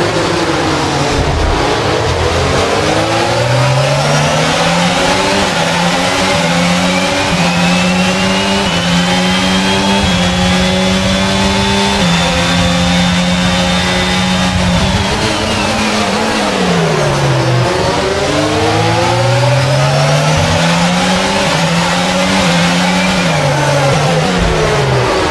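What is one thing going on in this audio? Rain hisses and spray roars under the tyres.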